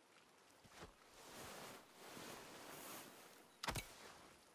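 Clothing and gear rustle.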